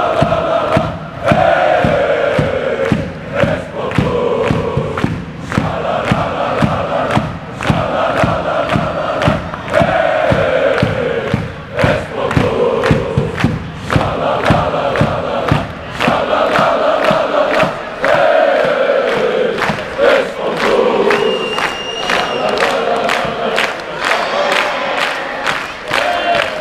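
A crowd claps in a fast steady rhythm.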